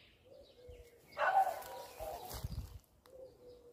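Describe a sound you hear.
Leafy branches rustle close by as they are brushed aside.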